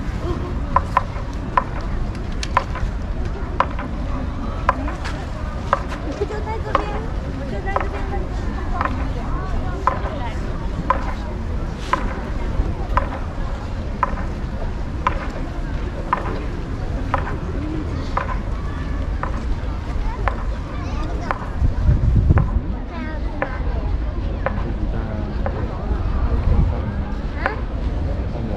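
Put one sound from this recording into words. A drum beats slowly and steadily.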